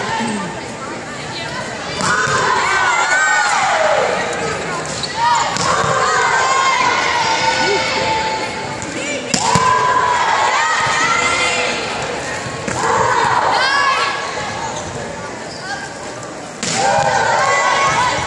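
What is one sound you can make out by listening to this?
A volleyball is struck with sharp slaps in a large echoing hall.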